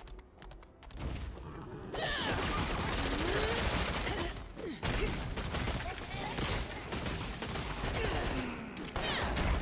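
Spells and weapons clash and burst in a fast fight.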